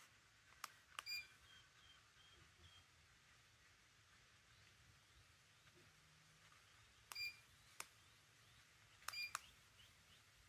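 A ceiling fan beeps sharply a few times.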